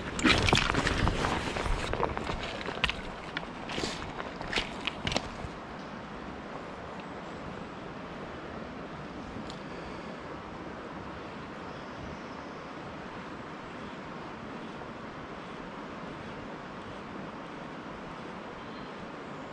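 A calm river flows softly outdoors.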